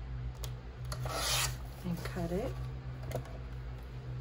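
A paper trimmer's blade slides and cuts through paper.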